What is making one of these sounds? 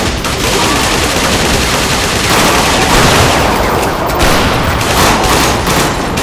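Bullets ping and clank off metal.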